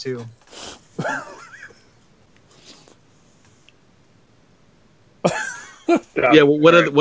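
Men laugh over an online call.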